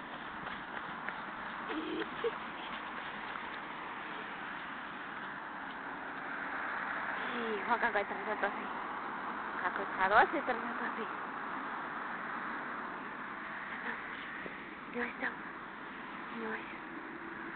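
A dog sniffs and snuffles at the ground up close.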